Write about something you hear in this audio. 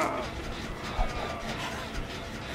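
A heavy weapon swings with a sudden whoosh and thud.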